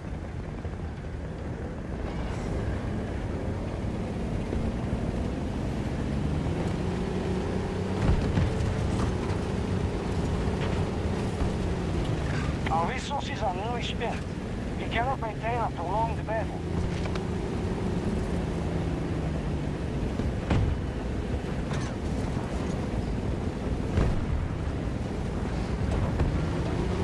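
A heavy tank engine rumbles and rises and falls in pitch as it drives.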